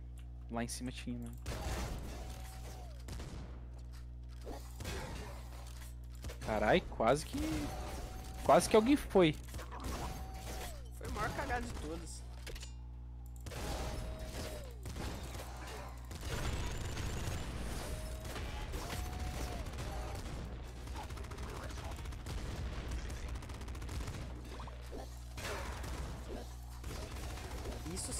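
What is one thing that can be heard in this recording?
Video game guns fire rapidly.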